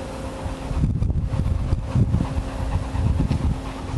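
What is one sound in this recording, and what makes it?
A dog pants quickly nearby.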